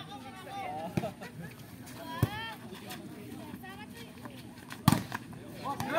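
A volleyball is struck hard with sharp slaps.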